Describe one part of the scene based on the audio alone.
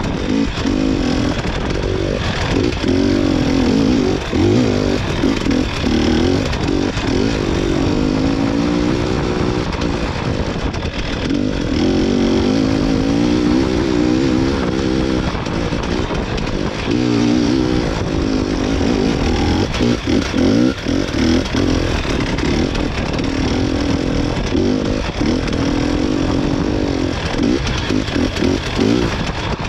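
A vehicle's body rattles and knocks over bumps.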